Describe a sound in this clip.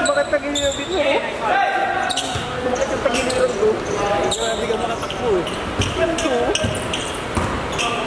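Basketball sneakers squeak sharply on a hardwood court in a large echoing hall.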